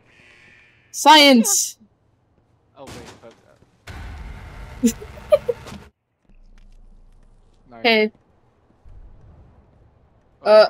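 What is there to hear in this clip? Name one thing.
A young woman squeals and exclaims excitedly into a microphone.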